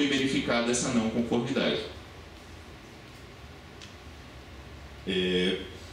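A young man speaks calmly into a microphone, heard through loudspeakers in a large room.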